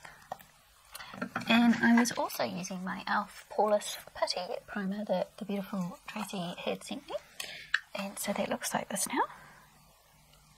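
A middle-aged woman talks calmly close to a microphone.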